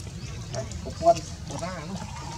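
Water splashes as a monkey leaps in.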